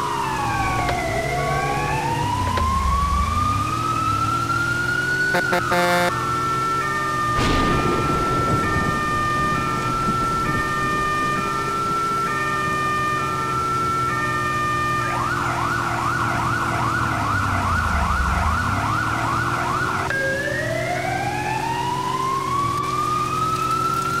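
A fire truck engine hums and revs.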